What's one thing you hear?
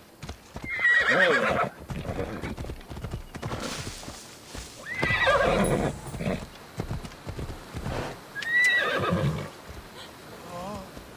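A horse gallops, hooves thudding on dry ground.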